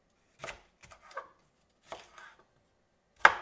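A knife chops through a pepper onto a wooden board.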